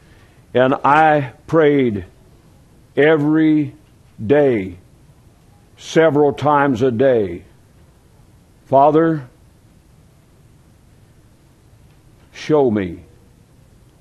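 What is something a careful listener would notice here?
A middle-aged man preaches with emphasis into a microphone, pausing between phrases.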